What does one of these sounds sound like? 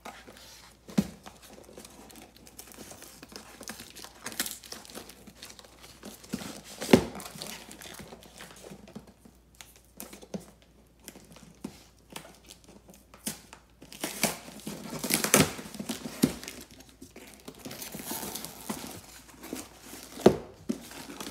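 A cardboard box knocks and thuds as it is handled.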